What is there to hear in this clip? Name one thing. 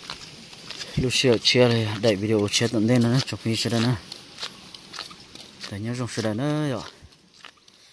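A man speaks close by, in short bursts.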